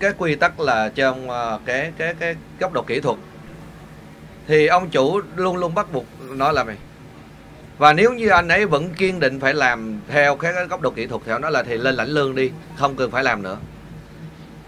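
A man speaks to an audience through a microphone in a large echoing hall.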